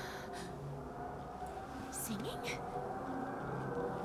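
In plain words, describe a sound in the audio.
A young woman asks a short question in surprise.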